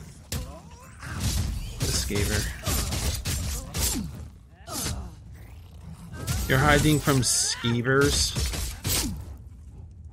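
Weapons strike and clash in a fight.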